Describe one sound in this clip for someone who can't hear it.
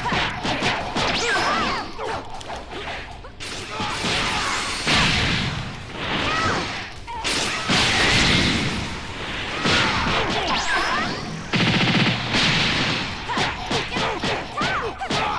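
Heavy blows thud and crack in a fight.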